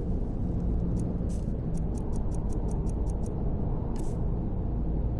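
Short soft ticks sound in quick succession.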